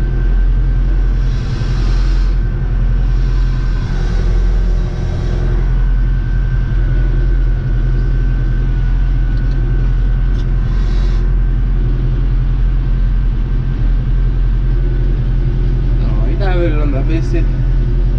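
A tractor rolls and bumps over rough ground.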